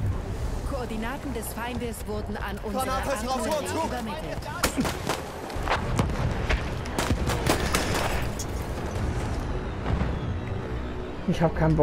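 Artillery shells explode with deep booms.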